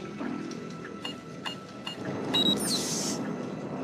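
Keypad buttons beep as they are pressed.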